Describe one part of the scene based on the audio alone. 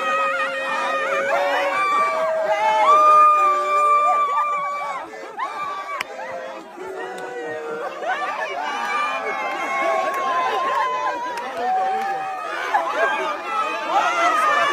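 A crowd of young men and women cheer and shout excitedly close by.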